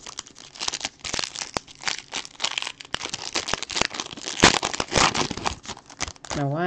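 A foil card pack crinkles and tears.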